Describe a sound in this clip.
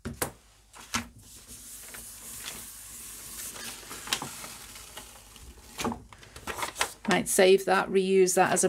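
Paper rustles and rubs.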